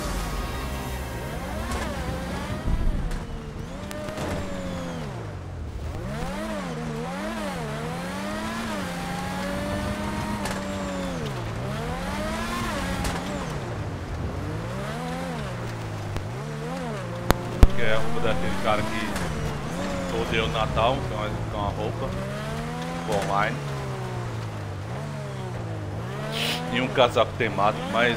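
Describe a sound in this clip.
A racing car engine revs up and down repeatedly as the car accelerates and slows.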